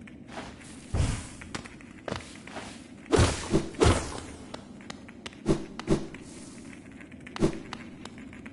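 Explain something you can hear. Heavy thuds and hits boom out.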